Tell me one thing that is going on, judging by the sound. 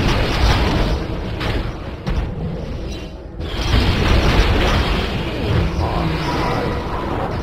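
Game spell effects burst and crackle in a video game battle.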